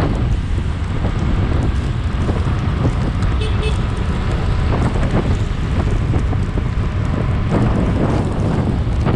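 A motorcycle engine hums while cruising.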